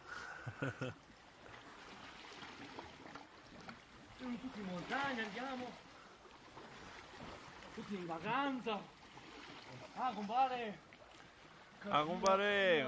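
A swimmer splashes gently through calm water.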